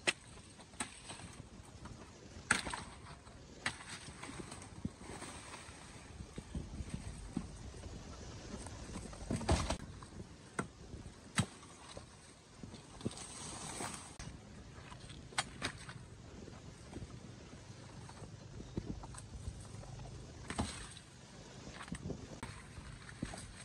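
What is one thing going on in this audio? Dry leaves and stalks rustle and crackle as a person moves through them.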